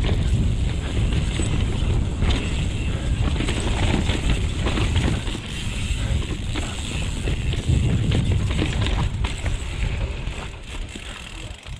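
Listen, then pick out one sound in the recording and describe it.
A bicycle frame and chain rattle over bumps.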